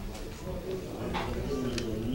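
A middle-aged man speaks calmly into a microphone in a slightly echoing room.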